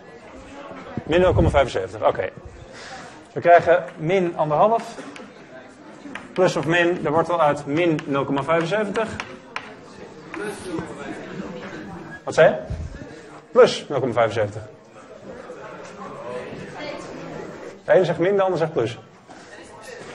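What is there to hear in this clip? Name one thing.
A young man lectures in an echoing room, speaking calmly.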